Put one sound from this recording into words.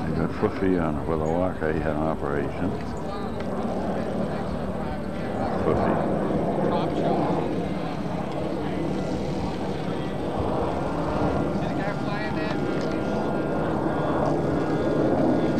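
A crowd of men chat outdoors.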